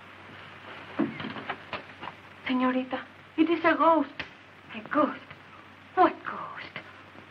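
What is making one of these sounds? A woman answers in a firm voice.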